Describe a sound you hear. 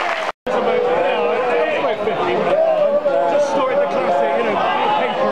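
A large crowd of fans sings together loudly in an open stadium.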